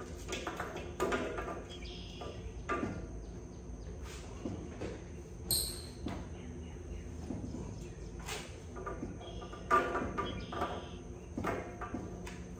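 Metal parts clink and knock.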